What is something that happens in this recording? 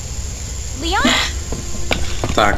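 A young woman calls out questioningly, close by.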